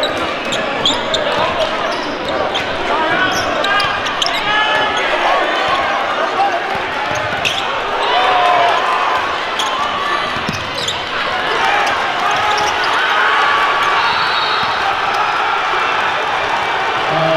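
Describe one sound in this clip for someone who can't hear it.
A basketball bounces on the court in quick dribbles.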